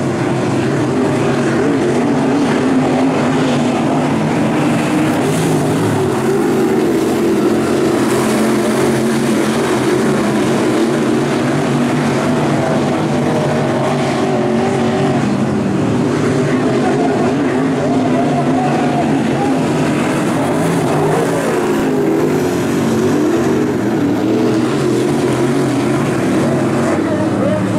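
Race car engines roar loudly and steadily as a pack of cars laps outdoors.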